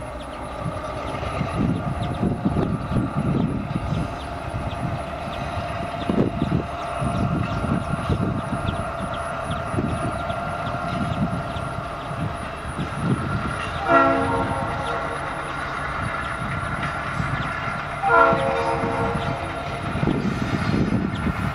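Freight cars rattle and clatter along the rails.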